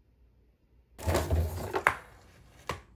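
A cardboard tube scrapes as it slides out of a cardboard box.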